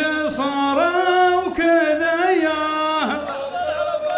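A man chants loudly into a microphone in long, drawn-out notes.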